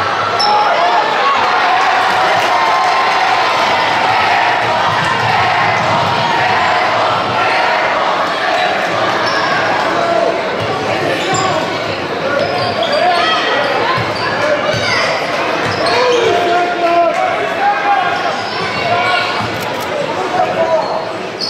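A large crowd cheers and chatters in an echoing gym.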